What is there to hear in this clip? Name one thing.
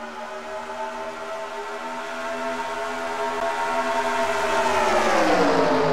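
Racing car engines roar at high speed, growing louder and dropping in pitch as a car passes close.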